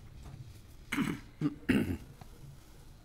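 An elderly woman speaks briefly into a microphone in a room.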